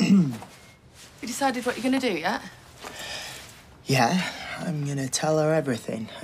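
A young man answers with annoyance.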